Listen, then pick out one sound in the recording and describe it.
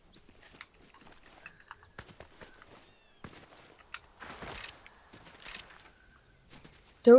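Footsteps patter quickly across grass.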